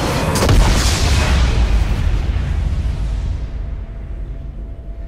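A loud game explosion booms and slowly fades away.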